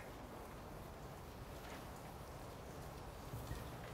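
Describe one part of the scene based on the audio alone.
An eraser rubs softly across a board.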